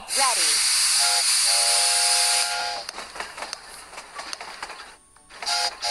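A cartoon train whistle toots.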